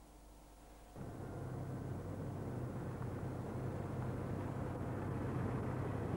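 A motorcycle engine idles with a low steady hum.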